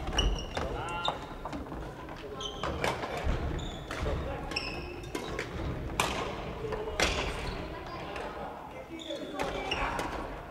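Sneakers squeak sharply on a wooden floor.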